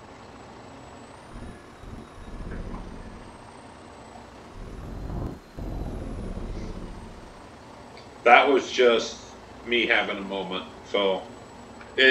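Grain pours steadily into a trailer with a soft rushing sound.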